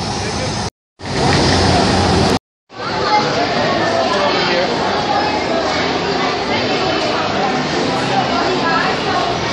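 A crowd chatters indoors in a busy, echoing hall.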